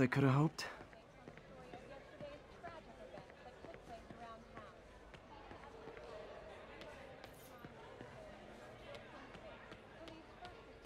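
A crowd of people murmurs quietly in a large echoing hall.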